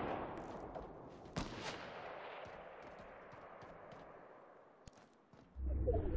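A sniper rifle fires a sharp shot.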